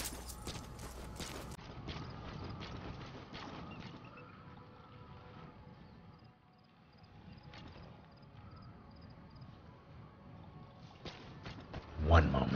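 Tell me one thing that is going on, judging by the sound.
Footsteps crunch on gravel and grass as a soldier runs.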